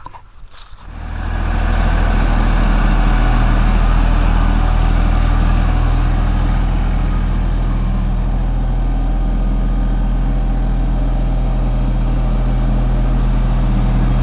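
A small engine runs with a steady low hum.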